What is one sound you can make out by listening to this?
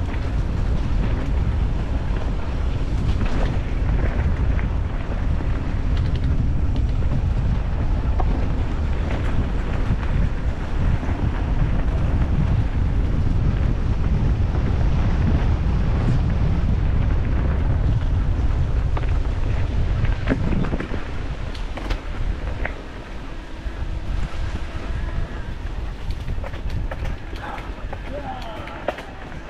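A bicycle rattles and clanks over bumps.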